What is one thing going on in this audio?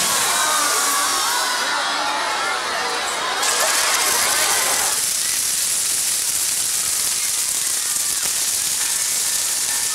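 Fireworks crackle and hiss loudly.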